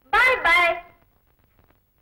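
A woman exclaims loudly and with feeling, close by.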